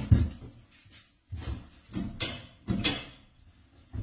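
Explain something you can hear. Footsteps thud and shuffle on a hard floor in an echoing space.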